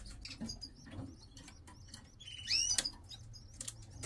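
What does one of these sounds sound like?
Baby birds chirp and beg shrilly for food.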